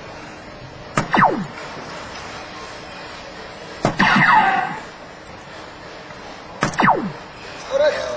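An electronic dartboard plays a falling tone after each hit.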